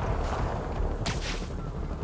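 A sharp whoosh of a web shot snaps out.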